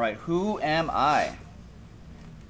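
A young man speaks with animation through a microphone.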